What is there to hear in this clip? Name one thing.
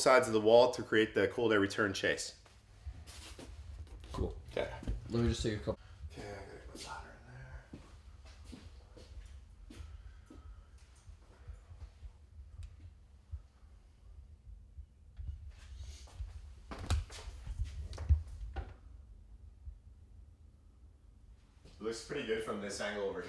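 A man talks calmly and clearly into a nearby microphone.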